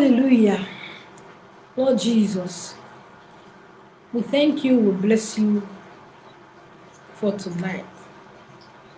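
A woman speaks calmly and close to a microphone, in short phrases with pauses.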